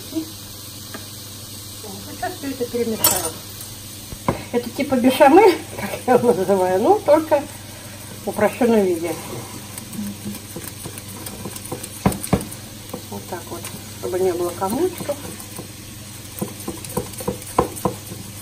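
A fork clinks against a bowl while whisking eggs.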